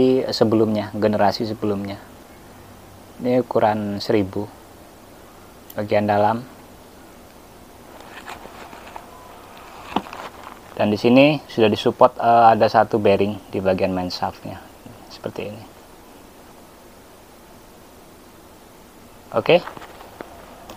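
A man talks calmly and close to a microphone, in short bursts.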